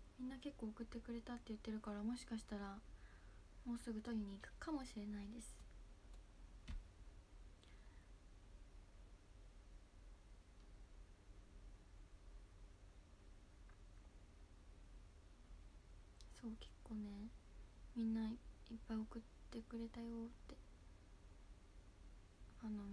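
A young woman speaks calmly and close up, with pauses.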